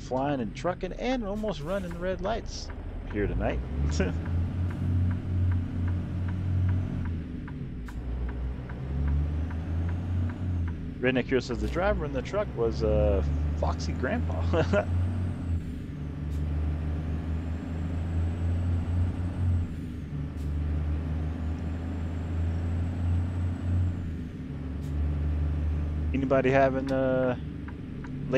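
A truck engine hums steadily and changes pitch as the truck shifts gears.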